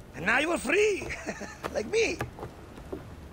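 A man speaks warmly with animation, close by.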